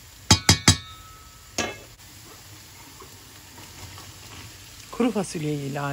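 Beans tumble softly into a pan of sauce.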